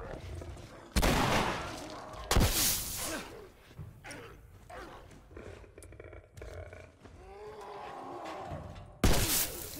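A shotgun fires loudly in booming blasts.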